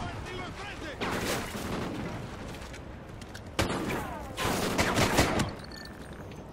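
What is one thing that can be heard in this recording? Gunfire rings out in short, rapid bursts.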